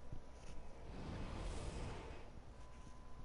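A soft rushing whoosh swells and fades away.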